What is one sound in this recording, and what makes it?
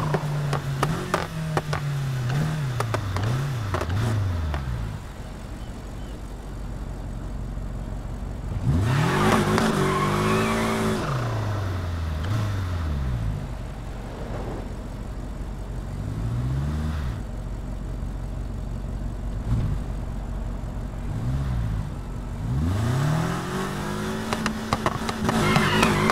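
A car engine revs up and down repeatedly, rising and falling in pitch.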